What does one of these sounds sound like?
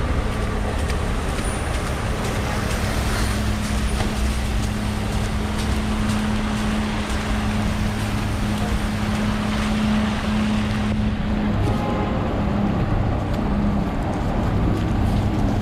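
Traffic noise fills a city street outdoors.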